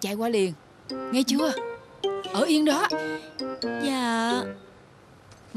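A young woman talks animatedly on a phone, close by.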